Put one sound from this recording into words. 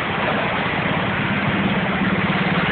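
A truck engine idles close by.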